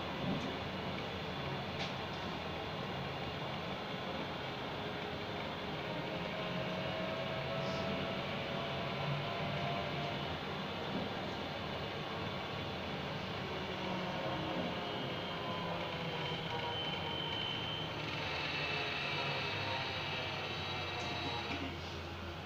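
A vehicle's engine hums steadily from inside while driving along a road.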